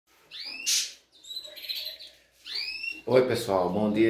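Small caged birds chirp and whistle.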